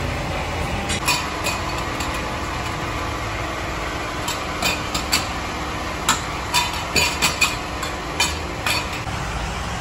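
A wrench clinks against wheel nuts.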